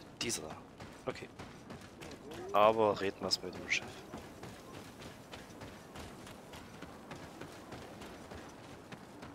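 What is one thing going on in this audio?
Footsteps run quickly over dirt and wooden planks.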